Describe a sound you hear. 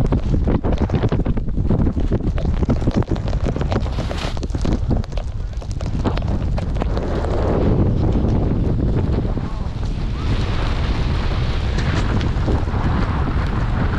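Wind rumbles loudly against a close microphone.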